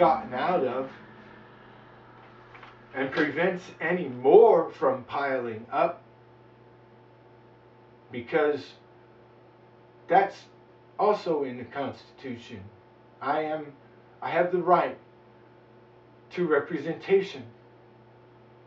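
A man speaks calmly close by, in short bursts with pauses.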